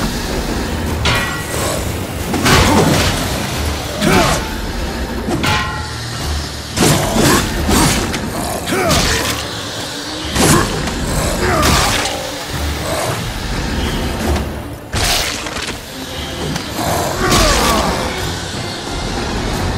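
Blades swing and slash with sharp whooshes.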